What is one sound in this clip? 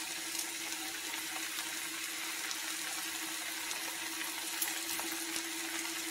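Thick sauce plops from a bowl into a pan.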